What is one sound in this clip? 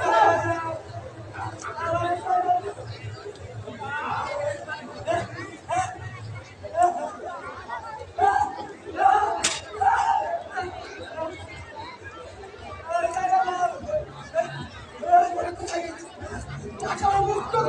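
A man speaks loudly and dramatically through a loudspeaker.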